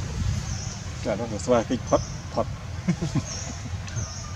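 A baby monkey squeaks close by.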